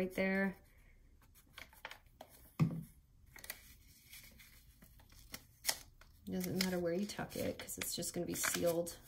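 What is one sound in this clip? Stiff paper rustles and crinkles as hands fold it.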